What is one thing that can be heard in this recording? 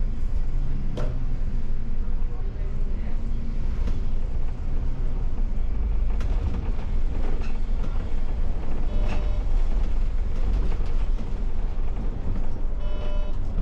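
Loose parts inside a bus rattle and click over bumps.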